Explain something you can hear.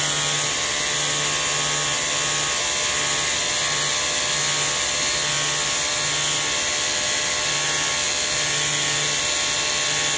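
A vacuum hair trimmer whirs with a loud, steady rushing hiss close by.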